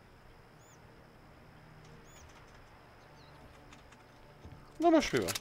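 A man speaks quietly into a nearby microphone.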